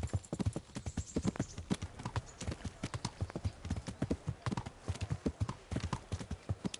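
Horse hooves clop quickly on a dirt and stone path.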